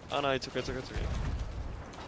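A ship's cannon fires with a deep boom.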